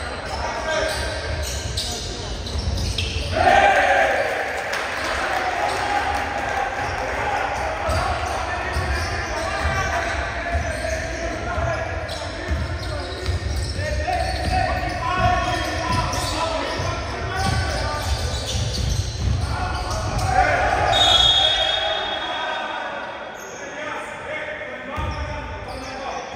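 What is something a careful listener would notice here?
Spectators cheer and shout in a large echoing hall.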